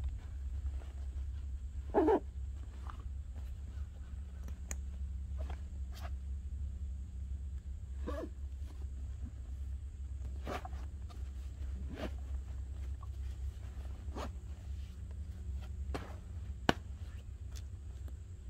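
A backpack's fabric rustles and its buckles click as a man handles it.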